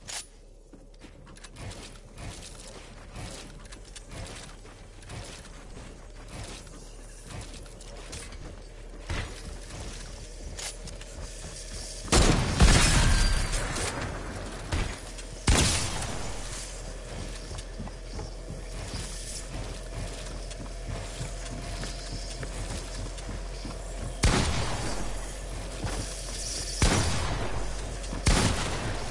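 Wooden and stone building pieces thud and clatter into place in a video game.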